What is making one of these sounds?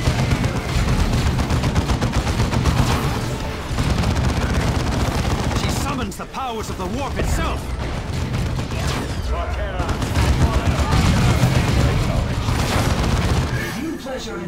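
Gunfire and explosions rumble steadily in a battle.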